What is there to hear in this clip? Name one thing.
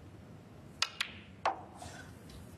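Snooker balls click sharply together.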